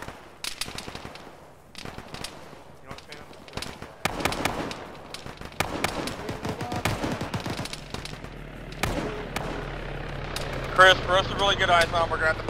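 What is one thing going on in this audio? Rifle shots crack in quick bursts outdoors.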